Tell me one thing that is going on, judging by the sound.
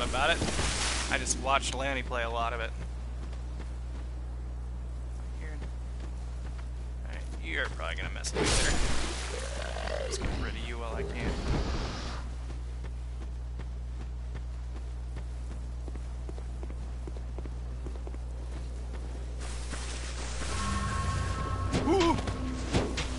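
A man talks casually into a microphone, close by.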